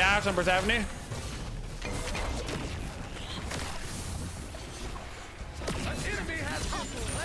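Spell effects whoosh and clash in a game battle.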